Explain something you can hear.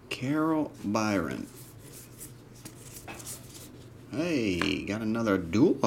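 Stiff cards rustle and slide against each other.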